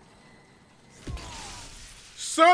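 A sudden sharp burst rings out as a game character is struck down.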